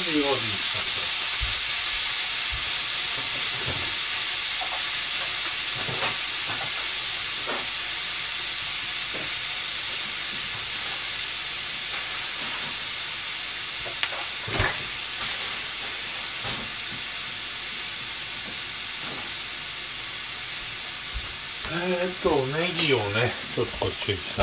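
Meat sizzles steadily in a frying pan.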